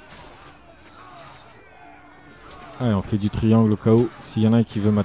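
Swords clang and clash in a fight.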